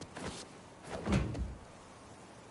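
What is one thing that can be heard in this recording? A heavy thud sounds as someone lands.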